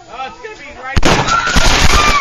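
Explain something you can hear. A firework bangs sharply.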